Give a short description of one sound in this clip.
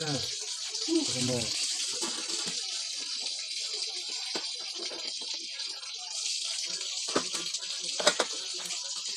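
A metal pot lid clanks.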